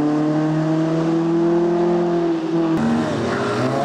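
A rally car engine revs loudly and pulls away around a bend.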